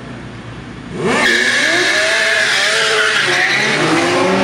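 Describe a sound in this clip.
Motorcycle engines rev loudly, rising and falling in pitch.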